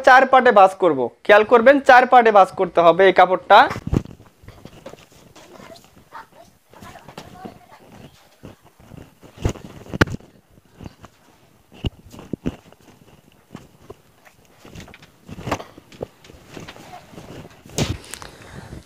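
Cloth rustles and swishes as it is spread and folded by hand.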